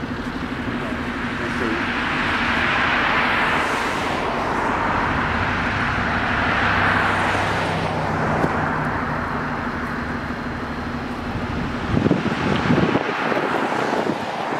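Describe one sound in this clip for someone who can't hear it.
Cars drive past one after another on a nearby road.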